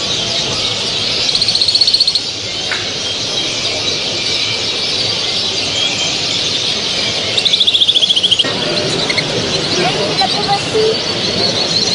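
Many small birds chirp and twitter all around.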